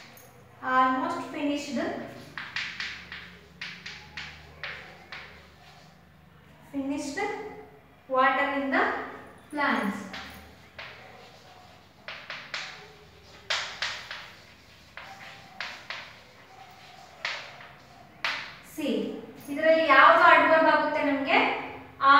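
A young woman speaks clearly.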